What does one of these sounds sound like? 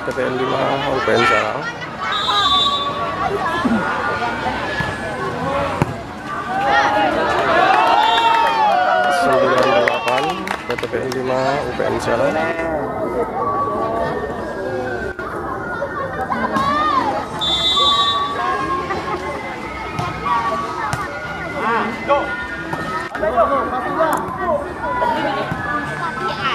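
A crowd of spectators chatters and cheers outdoors.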